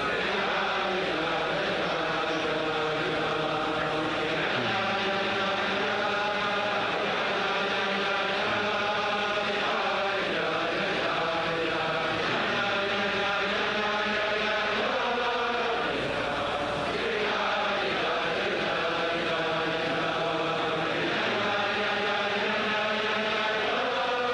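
A large crowd of men sings a slow melody together.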